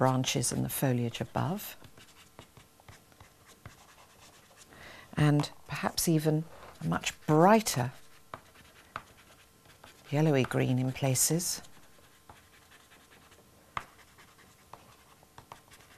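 Pastel chalk scratches and rubs softly on paper.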